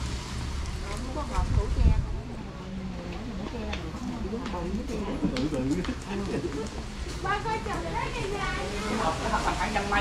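Young women talk with each other nearby.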